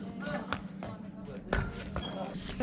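Shoes thud as a man lands a jump on concrete.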